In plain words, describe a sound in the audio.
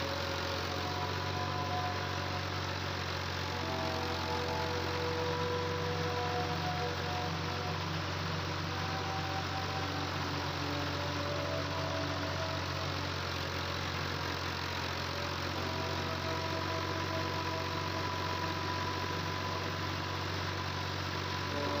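Soil scrapes and grinds beneath a dragged harrow.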